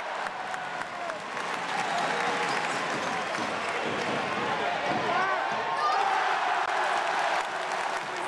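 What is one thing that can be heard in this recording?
A crowd cheers and chatters loudly in a large echoing arena.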